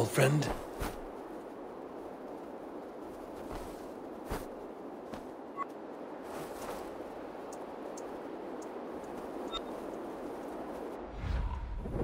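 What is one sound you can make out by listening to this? Wind rushes steadily past a gliding bird.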